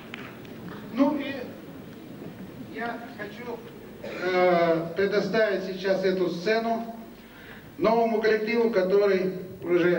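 A man speaks with animation into a microphone, heard through loudspeakers in a large hall.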